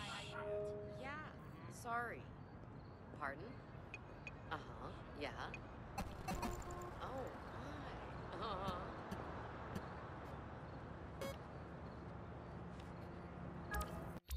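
Short electronic clicks and beeps sound as a phone menu is tapped through.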